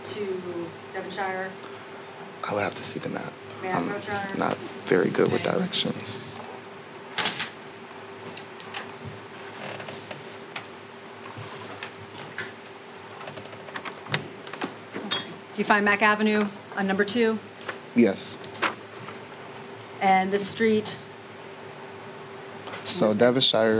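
A woman asks questions in a calm, firm voice through a microphone in a room with some echo.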